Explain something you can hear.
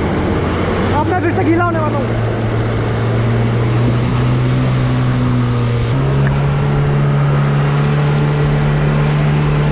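Water splashes and sprays under tyres.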